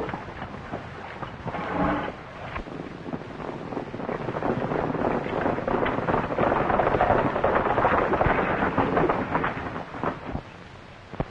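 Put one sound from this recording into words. Many horses gallop and their hooves thud on dirt.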